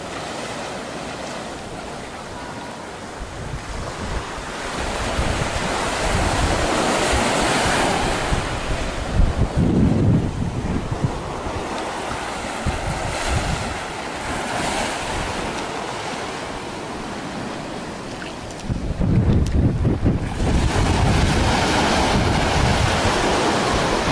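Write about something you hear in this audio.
Small waves wash gently onto the shore.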